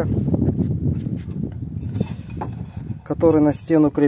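A ceramic tile slides and scrapes across a rough surface.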